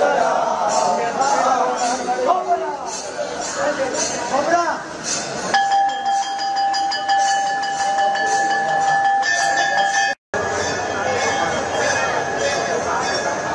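A crowd of men and women chants together.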